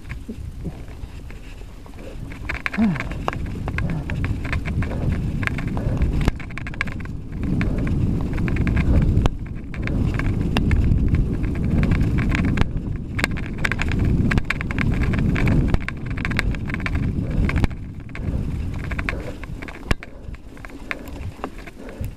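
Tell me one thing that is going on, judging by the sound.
A motorcycle engine rumbles and revs unevenly.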